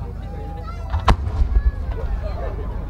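A firework shell launches with a thump.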